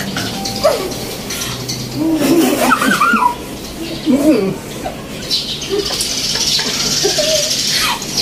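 A man talks and laughs with animation nearby.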